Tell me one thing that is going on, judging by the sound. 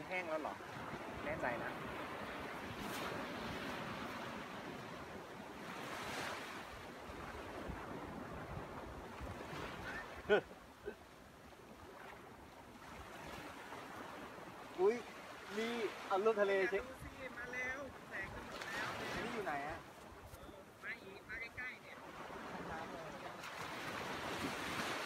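Small waves wash up and break on the shore.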